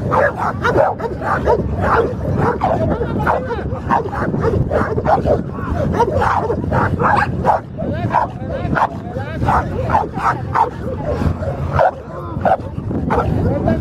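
A dog barks fiercely and repeatedly, close by.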